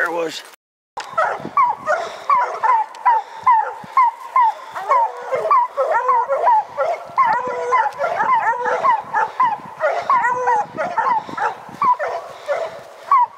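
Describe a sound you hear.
Hounds bark and bay rapidly and loudly nearby.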